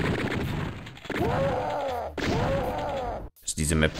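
A monster grunts and roars nearby.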